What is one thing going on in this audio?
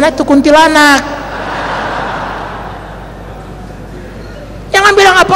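A crowd of men laughs.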